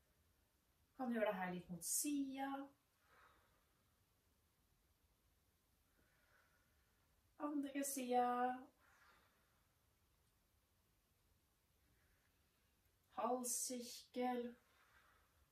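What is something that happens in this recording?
A woman speaks calmly in short phrases, close by.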